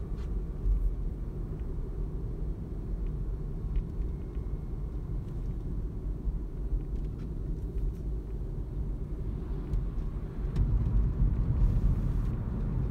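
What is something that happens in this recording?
A car engine hums and road noise rumbles steadily from inside a moving car.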